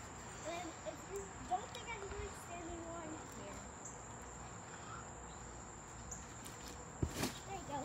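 A trampoline mat thumps and creaks as a child bounces.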